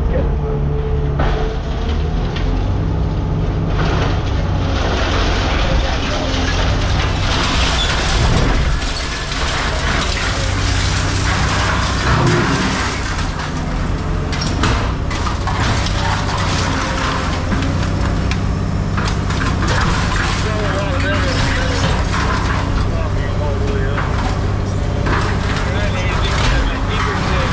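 Hydraulics whine as a machine's arm moves.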